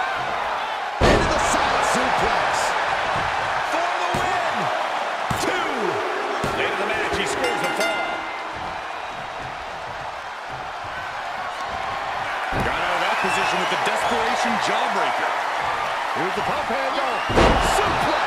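A heavy body slams onto a wrestling mat with a thud.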